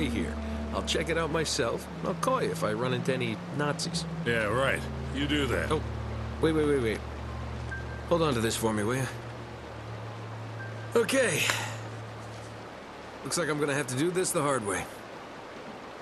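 A young man speaks calmly and casually.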